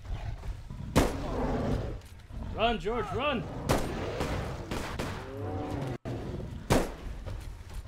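Gunshots crack sharply a few times.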